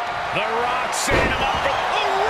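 A heavy body slams onto a wrestling mat with a thud.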